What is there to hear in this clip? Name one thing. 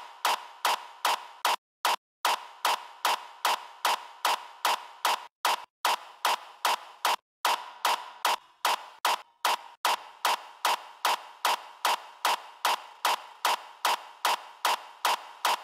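A sharp electronic drum hit repeats at a quick, steady pace, with short gaps.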